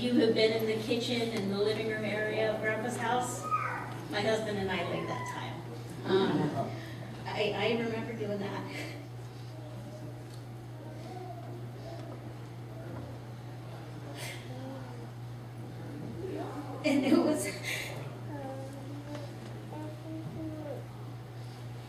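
A young woman speaks slowly through a microphone in a room with a slight echo.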